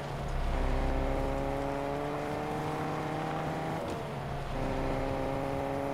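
A car engine hums steadily, its pitch dipping briefly as it shifts gear.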